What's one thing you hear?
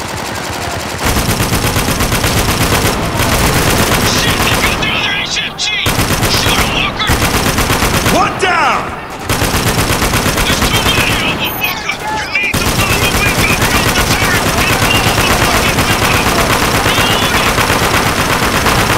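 A heavy machine gun fires long, rapid bursts.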